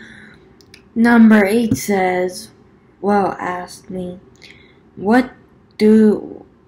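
A young woman speaks close to the microphone in a calm, casual voice.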